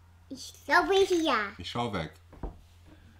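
A young child speaks in a high, excited voice close by.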